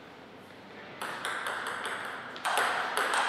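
A table tennis ball taps lightly on a paddle and table.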